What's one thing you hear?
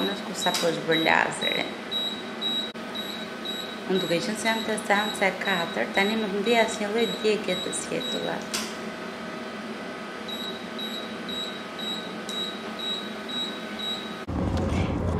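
A laser device beeps in a steady, quick rhythm.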